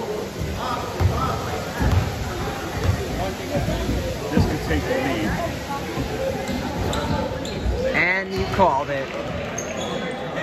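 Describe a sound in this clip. A basketball bounces on a wooden court.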